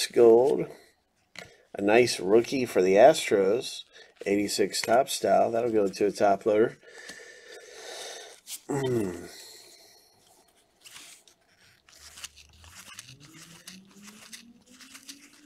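Cardboard trading cards rustle and slide as hands flip through a stack.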